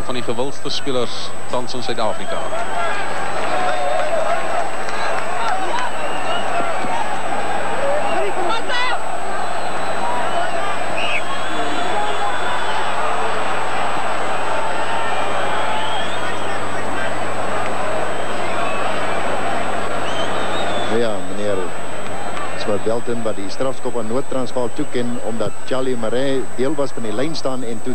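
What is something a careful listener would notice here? A large crowd roars and cheers in an open stadium.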